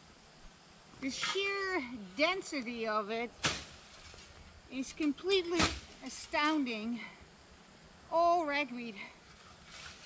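A woman talks calmly nearby, outdoors.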